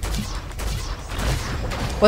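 Ice shards hiss through the air.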